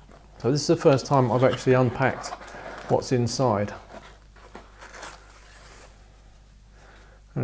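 Foam packing rustles softly as it is lifted out of a cardboard box.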